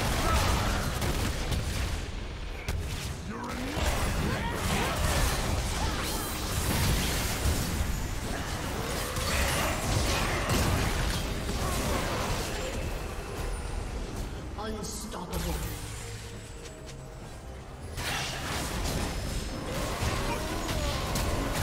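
Fantasy battle sound effects of spells bursting and clashing come in quick succession.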